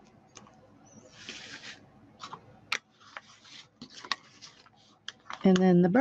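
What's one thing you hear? Paper rustles and slides against a surface.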